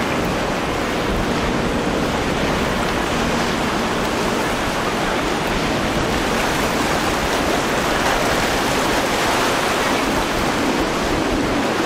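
Water splashes and hisses against a speeding boat's hull.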